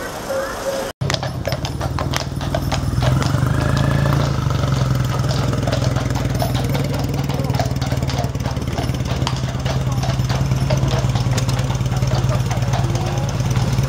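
The wheels of a horse-drawn dray rumble over a paved road.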